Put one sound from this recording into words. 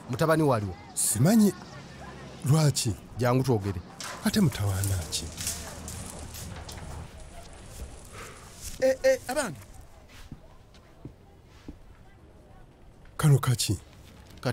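A man speaks in a tense, questioning voice, close by.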